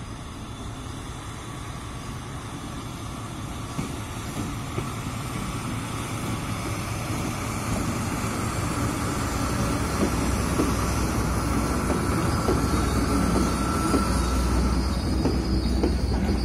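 Diesel locomotives rumble as they approach and grow louder.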